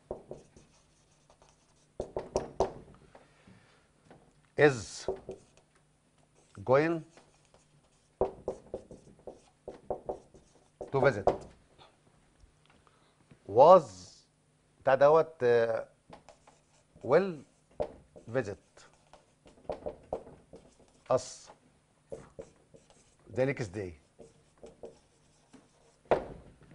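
A man speaks clearly in a lecturing manner, close to a microphone, with pauses.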